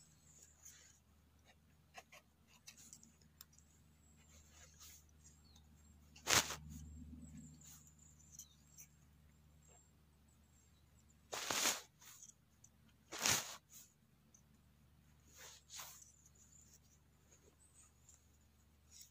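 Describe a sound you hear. A knife scrapes and peels the skin of a mushroom.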